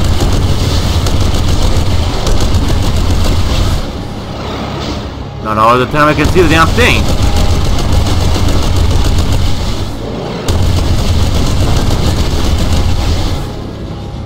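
A plasma weapon fires in a rapid, buzzing stream of shots.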